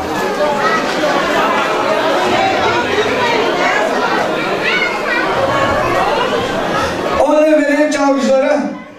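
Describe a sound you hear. A crowd of guests murmurs in a large hall.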